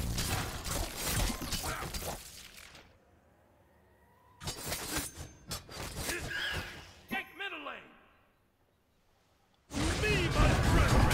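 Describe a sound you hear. Magic spell effects whoosh and crackle.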